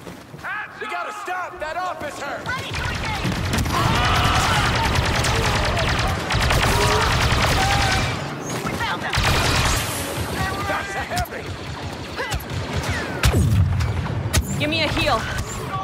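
Explosions rumble and boom nearby.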